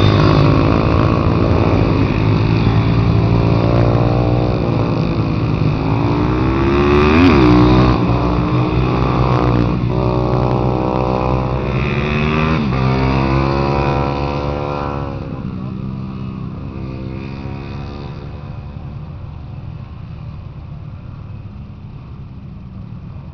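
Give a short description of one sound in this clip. Motorcycle engines buzz and rev as dirt bikes race past.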